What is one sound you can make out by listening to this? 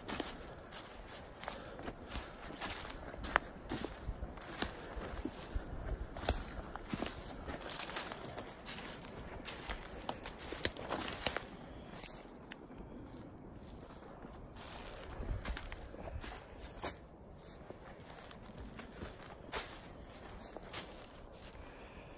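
Footsteps crunch on dry leaf litter outdoors.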